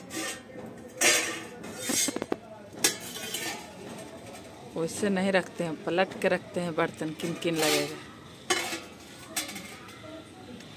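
A metal ladle scrapes and clinks against a pot.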